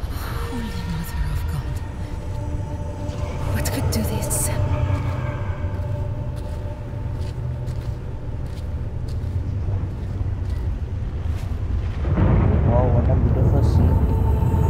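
A magical blast roars and crackles steadily.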